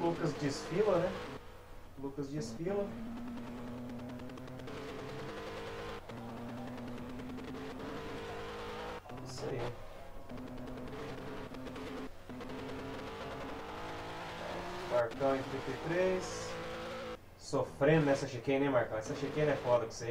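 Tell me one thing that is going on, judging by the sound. A racing car engine revs high and shifts gears.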